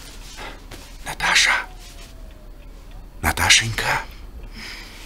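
A man whispers softly, close by.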